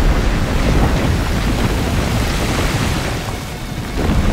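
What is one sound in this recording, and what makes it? Rocks and debris crash down with a deep rumble.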